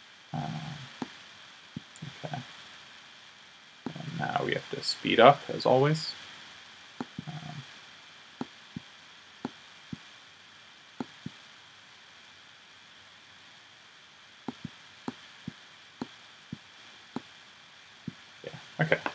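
Mouse clicks tap quickly and sharply.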